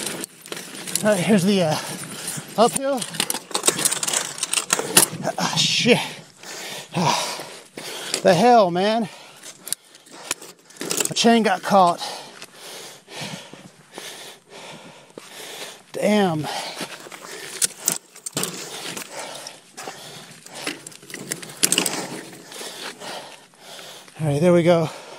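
A man groans and speaks close by.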